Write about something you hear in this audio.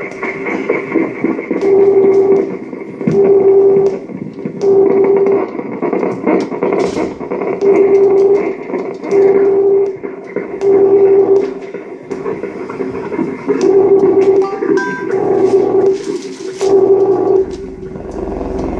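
Electronic music plays loud, in a regular pulsing rhythm of held tones.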